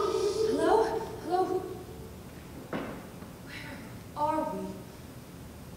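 A young woman speaks with expression.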